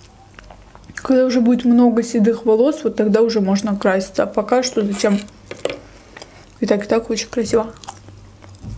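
A young woman speaks calmly and softly close to a microphone.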